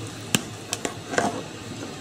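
A metal spoon scrapes against a plastic bowl.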